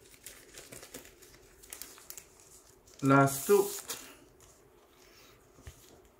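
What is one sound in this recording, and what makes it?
Plastic sleeves crinkle as comics are handled.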